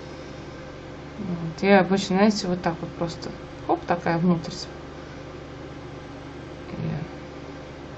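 A paintbrush dabs softly on paper.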